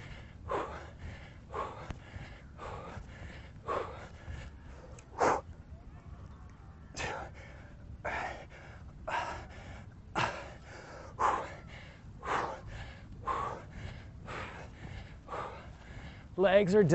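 A young man speaks in short, rhythmic bursts through a close microphone.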